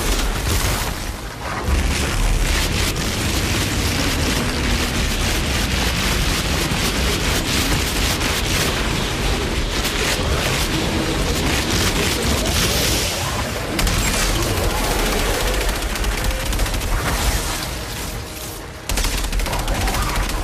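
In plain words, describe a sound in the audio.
Monsters roar and screech.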